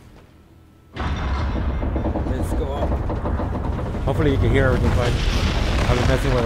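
Massive stone blocks grind and rumble loudly.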